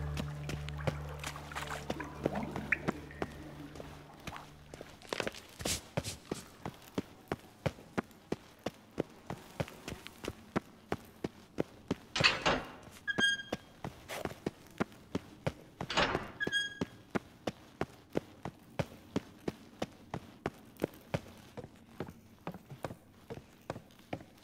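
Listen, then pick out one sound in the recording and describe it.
Footsteps thud steadily on stone in an echoing tunnel.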